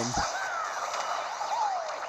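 A video game explosion bursts.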